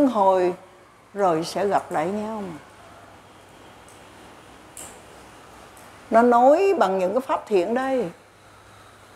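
An elderly woman speaks slowly and calmly through a microphone, with pauses.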